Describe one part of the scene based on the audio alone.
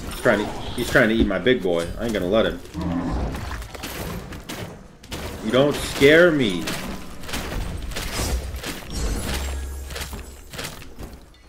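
Game sound effects of magical blasts and hits ring out.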